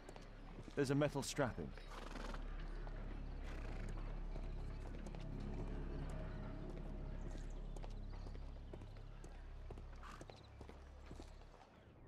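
Footsteps tread on cobblestones.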